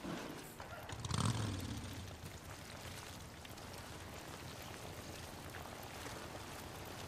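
A motorcycle engine starts and runs with a low, steady rumble.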